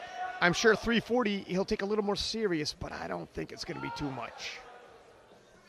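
A man shouts loud encouragement close by.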